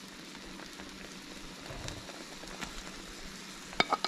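Pieces of food tumble from a plate into a pan.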